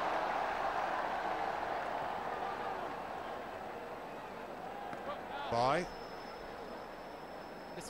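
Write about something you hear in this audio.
A large stadium crowd roars and cheers, then slowly quietens.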